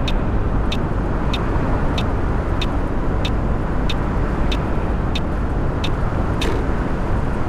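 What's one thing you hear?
A turn signal ticks evenly, then stops.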